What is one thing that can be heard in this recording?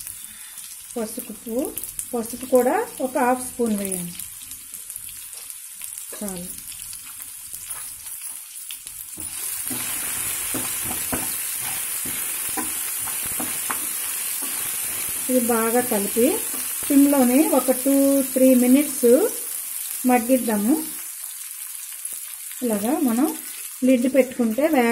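Food sizzles and crackles in hot oil in a pan.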